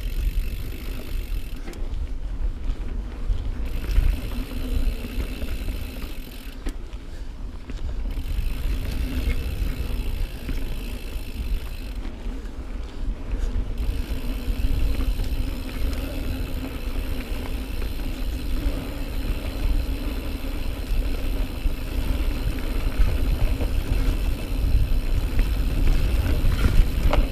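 Wind rumbles against a close microphone.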